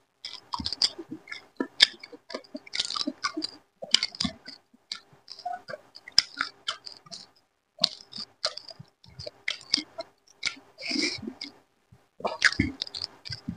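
Fingers squish and mix soft rice close by.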